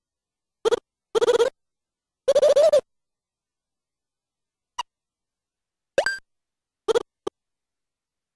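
Short, high-pitched game beeps chatter in quick bursts.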